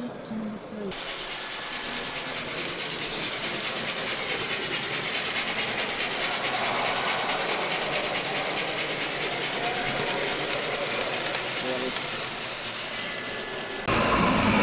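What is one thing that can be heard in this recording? A model train rumbles and whirs along the track.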